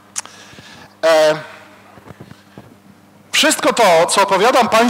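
A middle-aged man speaks into a microphone in a large, echoing hall.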